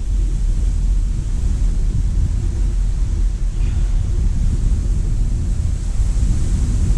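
Wind buffets the microphone outdoors with a steady low rumble.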